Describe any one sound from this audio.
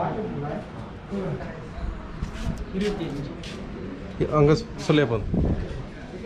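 A man speaks nearby in a calm voice.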